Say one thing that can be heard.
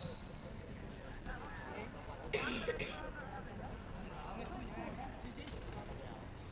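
Men shout and call out across an open sports pitch.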